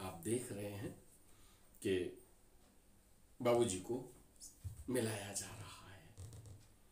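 A man speaks nearby in short, calm bursts.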